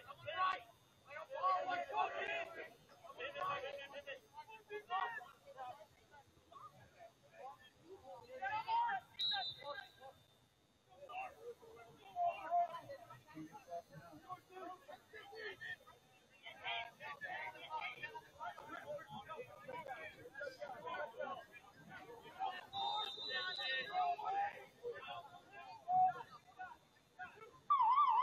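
Young players shout and call out to each other across an open outdoor field.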